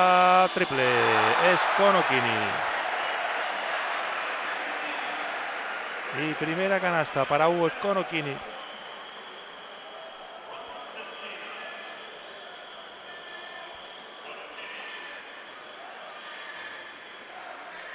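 A large crowd cheers loudly in a big echoing arena, then quiets to a murmur.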